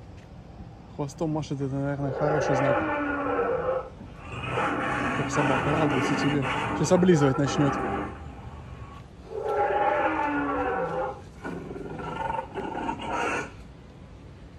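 A dinosaur roar booms from a loudspeaker in long, repeated bursts.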